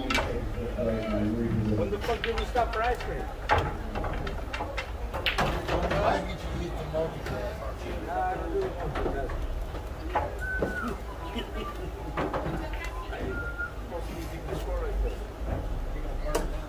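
Men and women chat quietly in the background.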